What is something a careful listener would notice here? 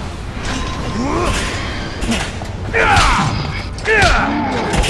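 A heavy monster growls and roars.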